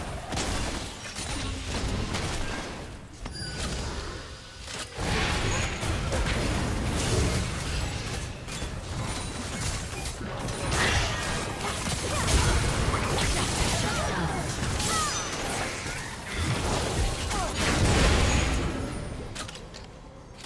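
Magic blasts and weapon strikes clash and burst in a busy fight in a video game.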